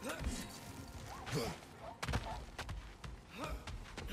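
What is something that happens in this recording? Heavy footsteps thud on wooden boards.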